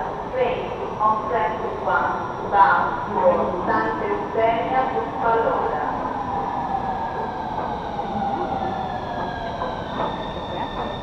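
A train pulls in with a falling, whining hum that echoes.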